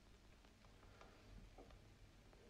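Glass clinks against glass.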